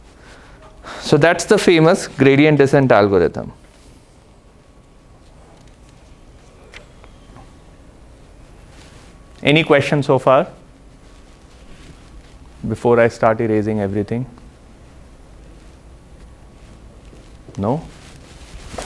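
A man speaks aloud in a room, in short bursts.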